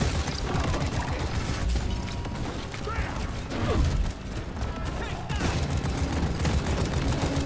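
Energy blasts crackle and explode around.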